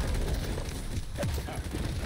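An explosion bursts close by.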